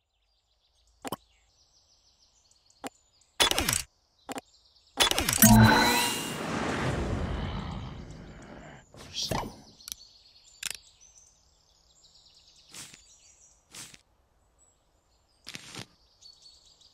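Short clicks and chimes sound as a game menu is used.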